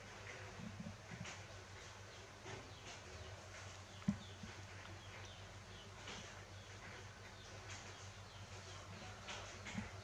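A towel rustles softly as a baby monkey wriggles.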